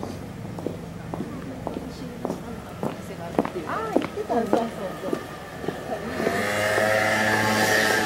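Boot heels click on pavement as people walk past.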